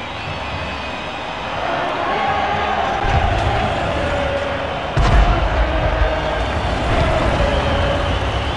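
A heavy tank engine rumbles and roars.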